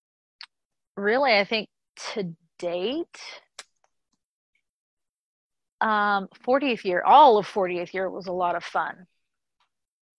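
A middle-aged woman talks calmly through an online call, with pauses.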